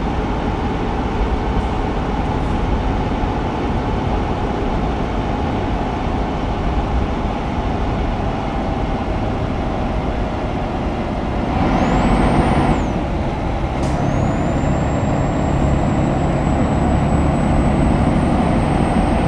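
A truck engine hums steadily as it drives along.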